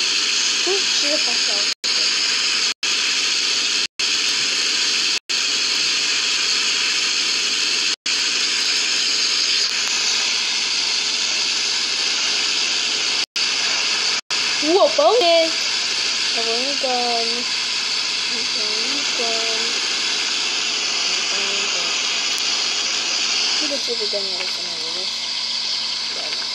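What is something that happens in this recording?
A young boy speaks close to a microphone.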